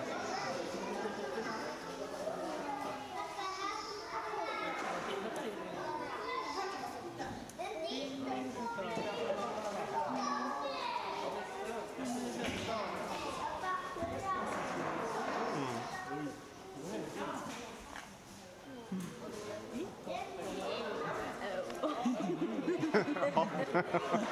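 Adults and children chatter nearby in an echoing hall.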